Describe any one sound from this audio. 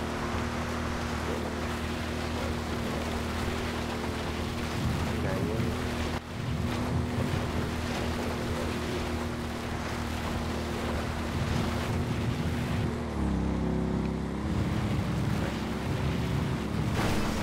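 Tyres rumble over gravel and railway sleepers.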